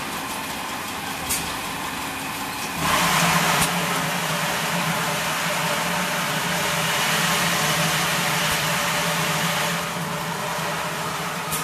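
Plastic water jugs rattle along a conveyor.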